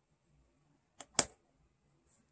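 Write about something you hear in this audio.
A small metal pan clicks softly onto a palette.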